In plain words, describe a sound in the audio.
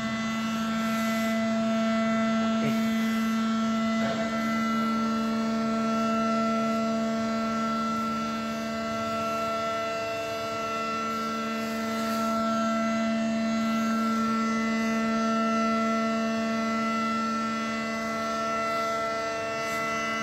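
A level crossing warning alarm sounds steadily.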